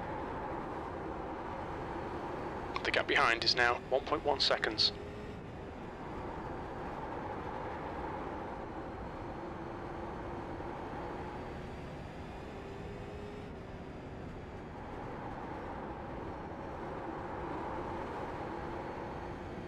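A race car engine roars steadily.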